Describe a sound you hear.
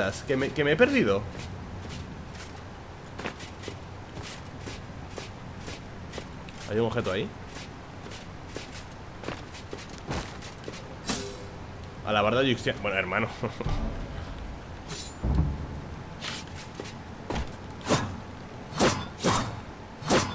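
Sword slashes and footsteps from a game sound in quick bursts.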